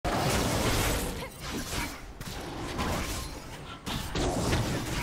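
Game sound effects of magic attacks and impacts crackle and whoosh.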